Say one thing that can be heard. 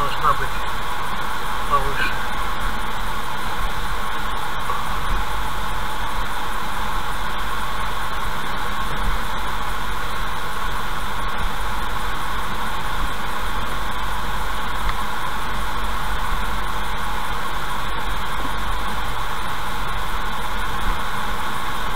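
A car drives steadily along a highway, its engine and tyres humming.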